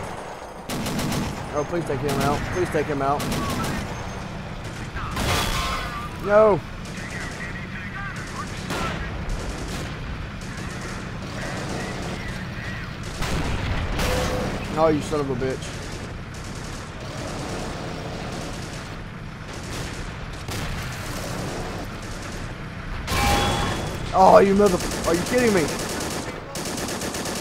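Shells explode nearby.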